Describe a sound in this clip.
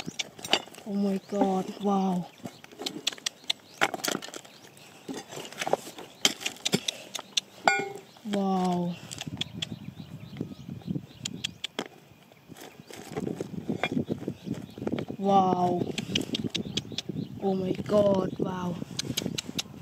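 Hands shift and clatter loose stones.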